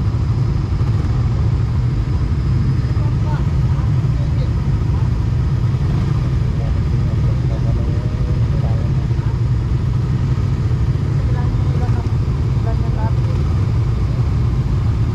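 Motorcycle engines idle with a steady low rumble close by.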